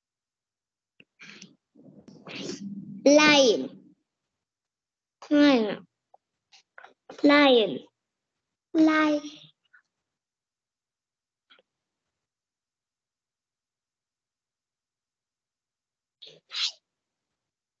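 Children repeat words aloud over an online call.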